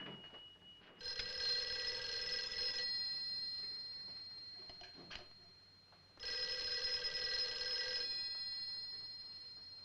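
An old telephone bell rings loudly, in bursts.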